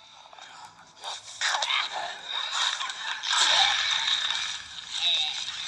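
Punches and struggling thuds sound from a close fight in a video game.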